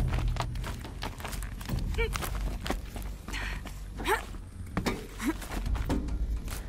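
Soft thuds of climbing and landing sound on wooden beams.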